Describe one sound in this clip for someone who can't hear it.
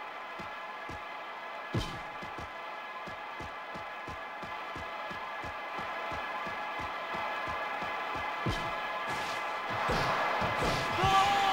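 Upbeat electronic game music plays with a quick steady beat.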